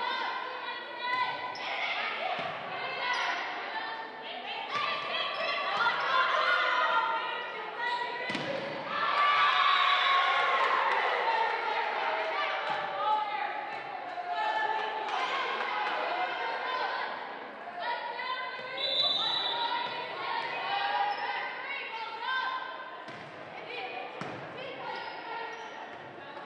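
Young women call out and shout to each other on the court.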